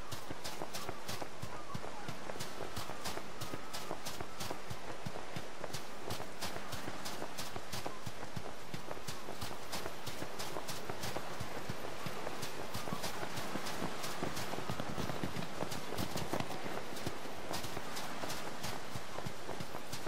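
Gentle waves wash on a shore.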